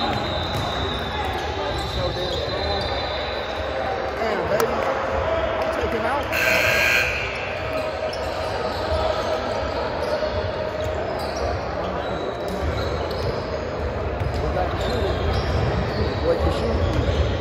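Players and onlookers chatter and call out in the background.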